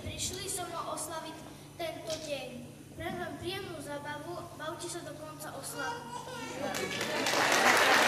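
A young girl speaks into a microphone over loudspeakers.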